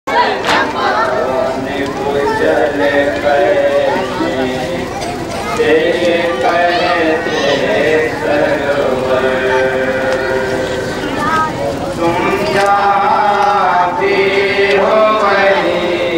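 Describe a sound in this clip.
Several men sing along in chorus.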